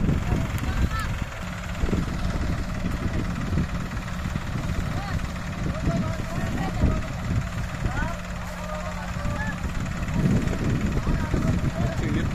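Tractor engines rumble steadily close by.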